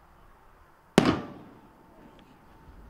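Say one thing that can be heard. A firework bursts overhead with a loud bang that echoes away.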